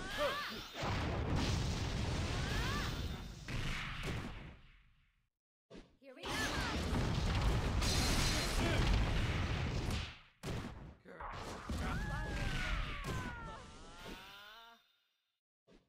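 Loud magical blasts and crackling ice bursts crash in bursts.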